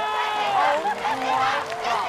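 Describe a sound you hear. A young woman cheers excitedly.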